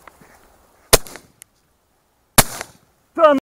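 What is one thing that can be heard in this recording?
A shotgun fires two loud shots close by.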